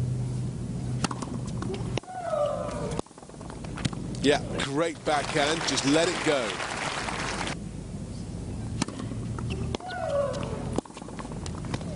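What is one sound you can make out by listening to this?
A tennis ball is struck hard with a racket, with sharp pops.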